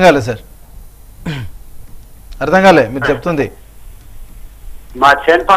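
A middle-aged man speaks calmly and clearly into a studio microphone, with short pauses.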